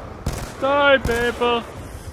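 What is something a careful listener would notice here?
A gun fires a shot in a video game.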